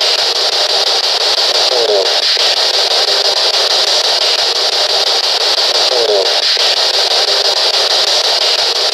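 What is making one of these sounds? A radio scanning device hisses with rapid crackling static.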